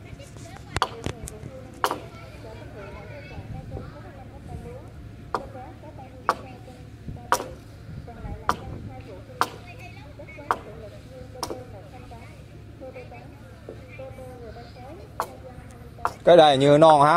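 Sharp blows of a blade chop into wood at a steady, slow pace.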